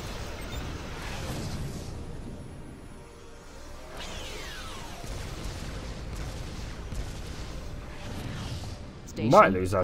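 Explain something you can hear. Explosions rumble low and heavy.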